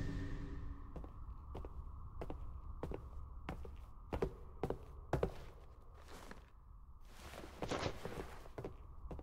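Heavy armored footsteps clank steadily on a hard floor.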